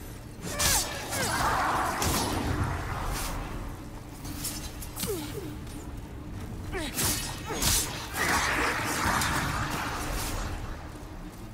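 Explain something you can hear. A magical blast whooshes and crackles.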